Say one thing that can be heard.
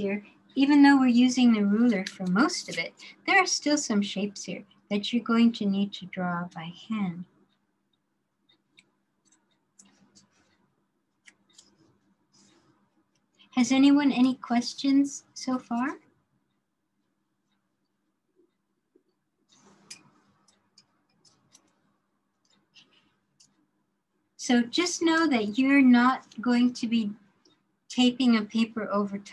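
An older woman talks calmly over an online call, pausing now and then.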